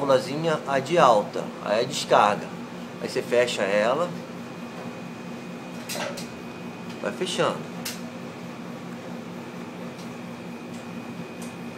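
An air conditioning unit hums steadily.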